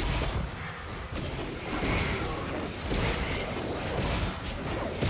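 Video game spell effects whoosh and crackle during a fight.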